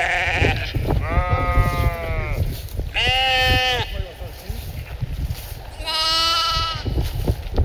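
A sheep bleats loudly and repeatedly.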